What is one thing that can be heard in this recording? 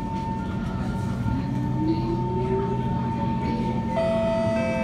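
An electric metro train's motors whine, rising in pitch as the train pulls away.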